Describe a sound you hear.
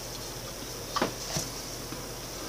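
A glass jar knocks against a wooden table.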